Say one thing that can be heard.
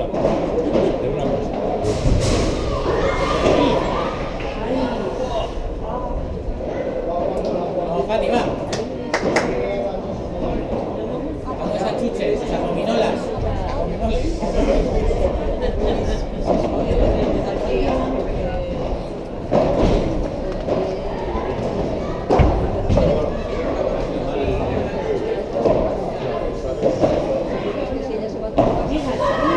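Paddle rackets hit a ball with sharp pops in a large echoing hall.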